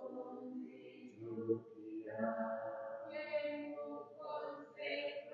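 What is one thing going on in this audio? A man sings a slow, prayerful chant close by.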